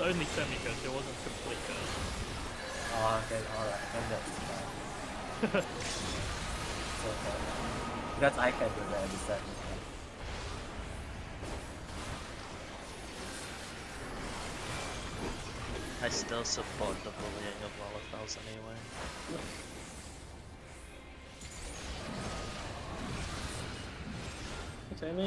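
Magic blasts burst and crash with bright ringing hits.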